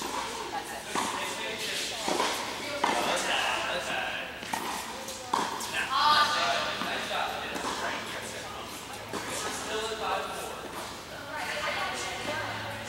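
A tennis racket hits a ball, echoing in a large indoor hall.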